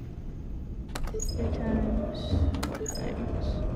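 A button clicks sharply twice.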